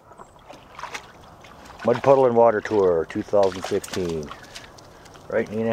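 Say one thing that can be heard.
A dog splashes through shallow water.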